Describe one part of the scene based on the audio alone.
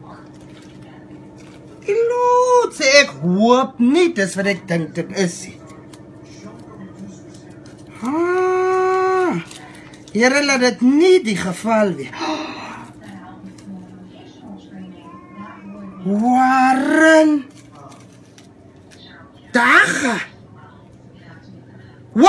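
Paper rustles and crinkles in a woman's hands.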